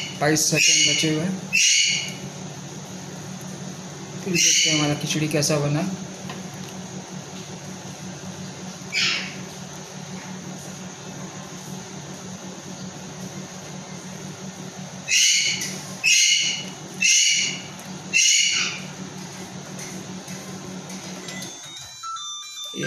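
A microwave oven hums steadily while running.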